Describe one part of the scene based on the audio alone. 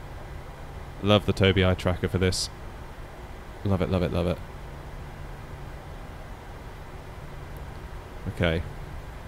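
A man speaks briefly in short bursts through a headset microphone.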